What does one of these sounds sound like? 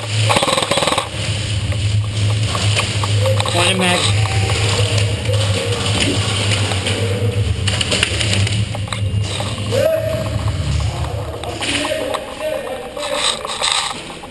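An airsoft gun fires in quick bursts.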